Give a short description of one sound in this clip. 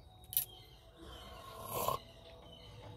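A young woman sips a drink from a cup.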